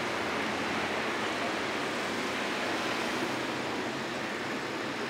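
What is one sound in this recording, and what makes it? Steady traffic rushes past close below, tyres hissing on the road.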